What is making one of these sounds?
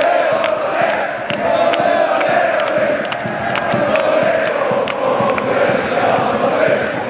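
Hands clap in rhythm among the crowd.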